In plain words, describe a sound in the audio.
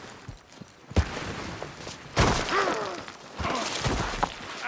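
A body tumbles down and thuds onto the ground.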